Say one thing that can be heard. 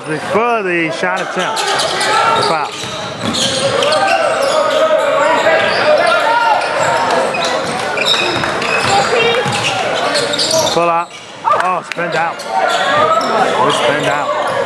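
A ball bounces on a hardwood court.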